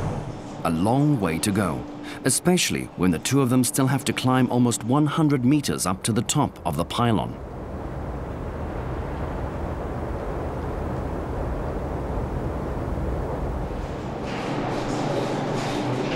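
Footsteps clang on a metal grating walkway.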